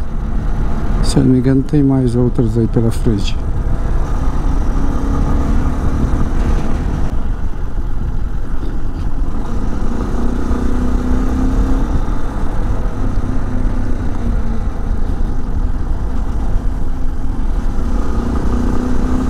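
Wind rumbles strongly against the rider.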